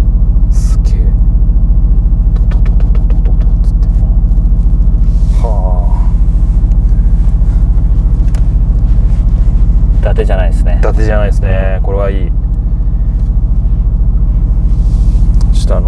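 A car engine rumbles deeply and steadily from inside the cabin.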